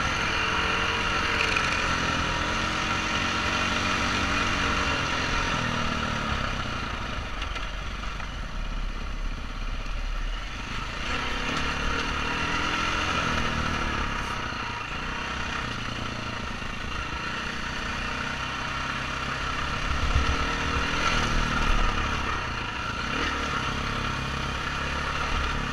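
A dirt bike engine revs and drones up close, rising and falling in pitch.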